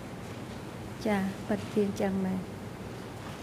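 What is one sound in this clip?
A woman speaks briefly and softly into a microphone.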